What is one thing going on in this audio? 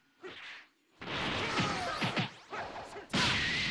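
A video game blow lands with a heavy explosive impact.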